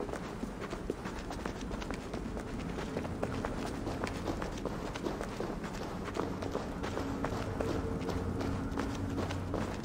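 Footsteps tread on a stone floor at a steady walking pace.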